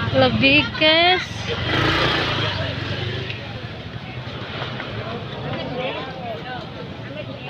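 People chatter in a busy street.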